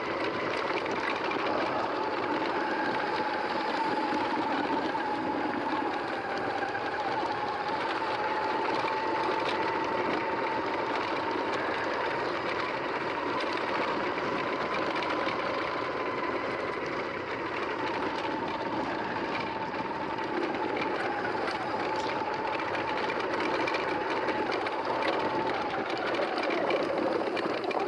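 An electric bicycle motor whines steadily.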